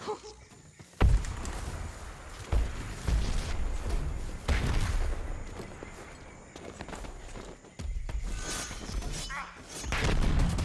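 Footsteps thud and rustle through undergrowth.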